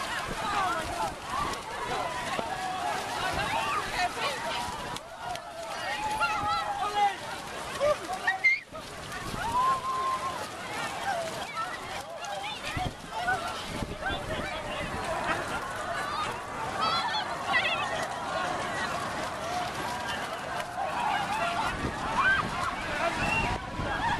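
Bare feet splash through shallow water on wet sand.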